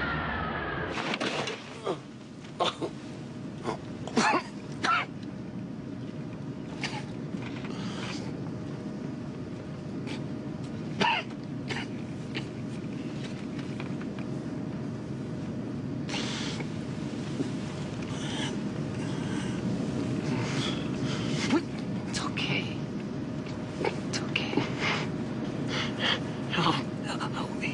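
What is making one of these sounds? A steady engine drone hums inside an airliner cabin.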